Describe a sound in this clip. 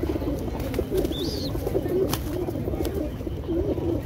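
A pigeon's wings flap briefly close by.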